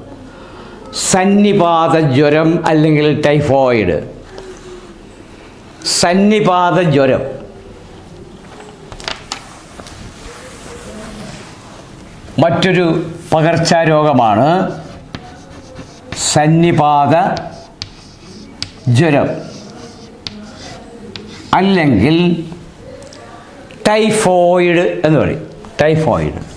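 An elderly man speaks slowly and calmly into a nearby microphone, in short phrases.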